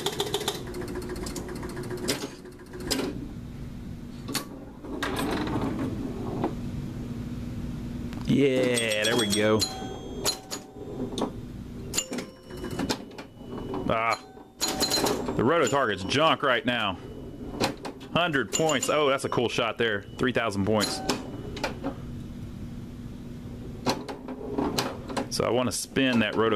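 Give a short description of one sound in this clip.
A pinball knocks against bumpers and flippers with sharp clicks.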